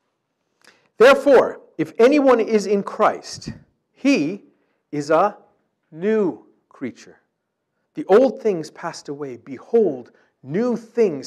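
A middle-aged man reads aloud steadily through a microphone.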